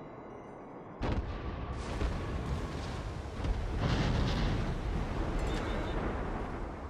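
Shells explode against a ship with deep roaring blasts.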